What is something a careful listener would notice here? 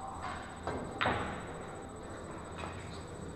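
Billiard balls knock together.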